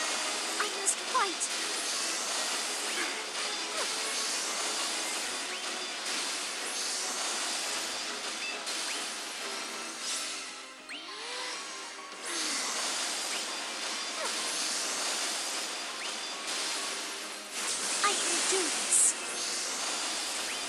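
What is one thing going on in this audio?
Magical blasts whoosh and crash again and again.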